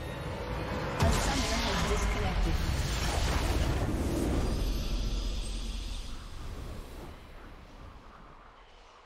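A loud explosion booms and rumbles, then slowly fades.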